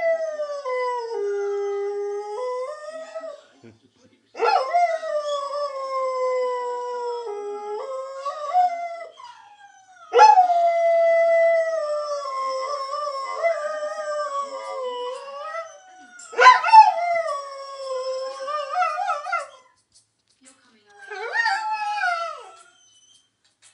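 A dog howls in long, wavering cries close by, pausing between them.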